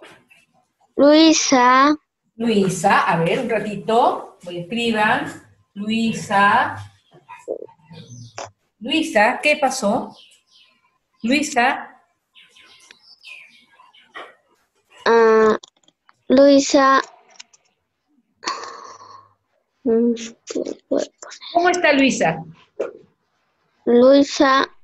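Children speak over an online call, one at a time, with bright young voices.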